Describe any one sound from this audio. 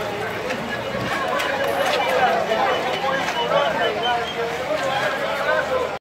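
A crowd of men and women chatter loudly all around, close by.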